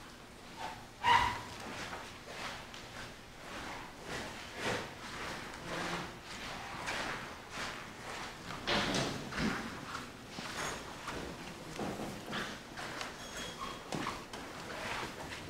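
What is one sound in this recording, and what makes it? A man speaks quietly at a distance.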